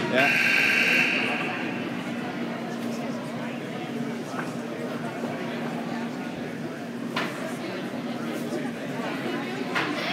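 Two men talk quietly far off in a large echoing hall.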